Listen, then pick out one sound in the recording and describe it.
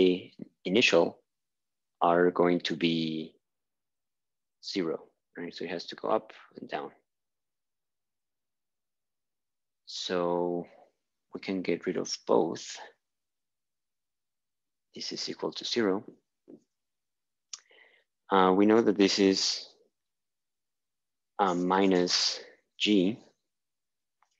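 A young man explains calmly into a close microphone.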